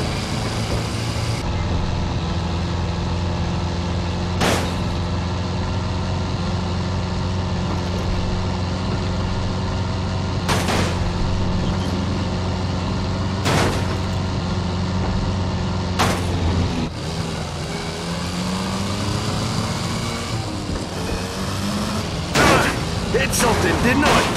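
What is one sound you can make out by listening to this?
A car engine drones steadily, then revs up.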